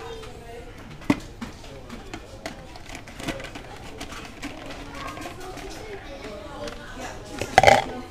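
A plastic scoop clatters against a plastic bin lid.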